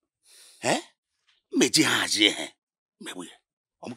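A woman speaks tearfully close by.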